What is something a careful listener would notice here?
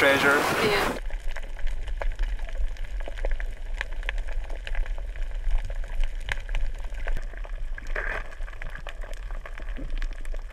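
Underwater, the sound is muffled with faint crackling.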